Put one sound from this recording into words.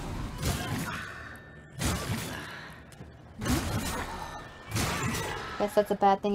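Heavy blows strike with loud, sudden thuds and slashes.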